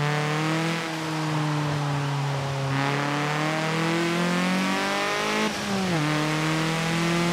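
A race car engine drones steadily and rises in pitch as it accelerates.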